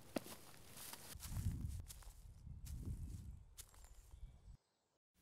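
Footsteps crunch on dry leaves outdoors.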